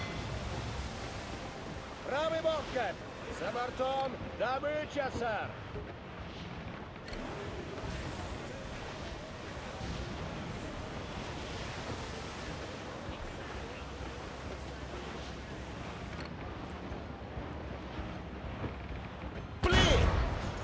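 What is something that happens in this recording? Sea waves rush and wind blows steadily around a sailing ship.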